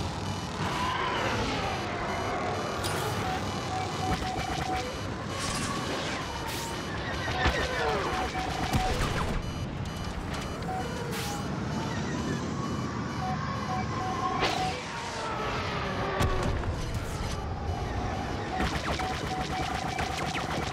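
A starfighter engine roars and whooshes through the air.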